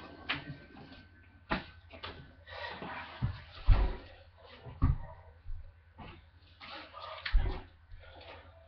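Bodies thump heavily onto a mattress.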